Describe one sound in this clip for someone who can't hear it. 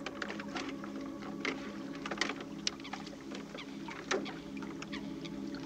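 A man's footsteps thud on a wooden boat.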